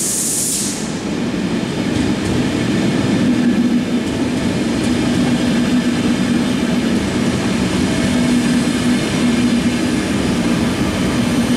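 Train wheels clatter and squeal on the rails as a train rolls past close by.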